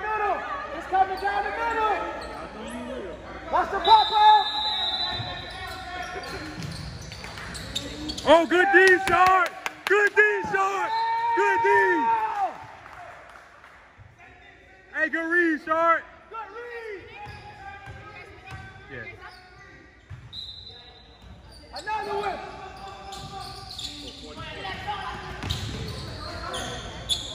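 Young men shout to each other in a large echoing gym.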